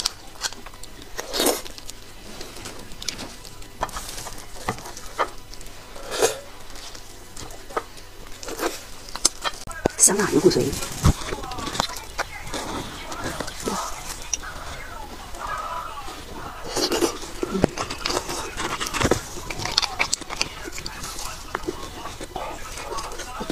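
A young woman slurps and sucks marrow from a bone, close up.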